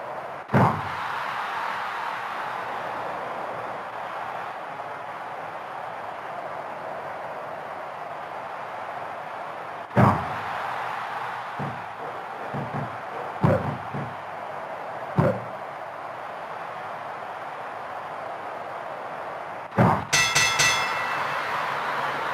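A crowd cheers steadily in a large arena.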